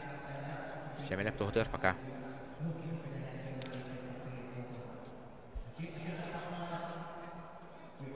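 A crowd murmurs and talks in a large echoing hall.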